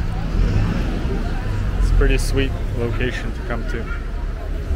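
Young women chat and laugh nearby.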